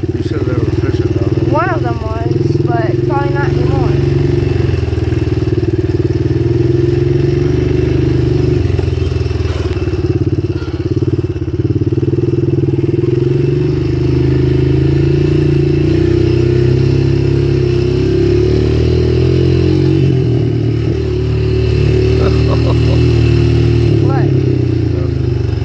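An engine roars steadily up close, rising and falling with the throttle.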